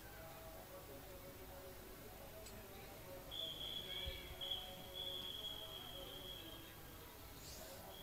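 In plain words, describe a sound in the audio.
Young men chant together softly through microphones.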